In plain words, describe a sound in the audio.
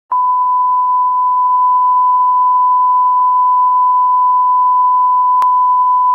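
A steady high test tone sounds without a break.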